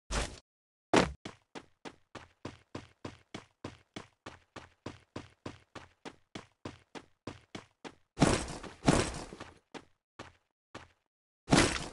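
Quick footsteps thud on grass in a steady running rhythm.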